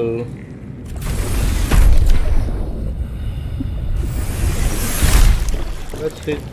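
A hatch door opens with a mechanical whoosh.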